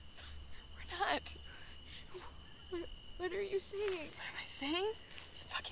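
A second young woman answers quietly and tensely, close by.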